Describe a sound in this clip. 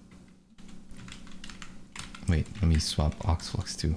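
Computer keys clatter under typing fingers.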